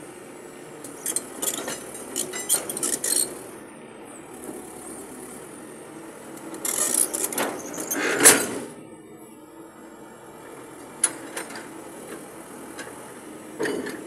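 An excavator engine hums steadily outdoors.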